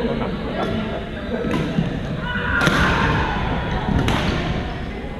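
Paddles knock a ball back and forth in a large echoing hall.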